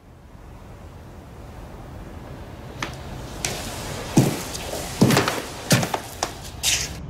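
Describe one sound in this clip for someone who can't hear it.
Footsteps sound slowly on a carpeted floor.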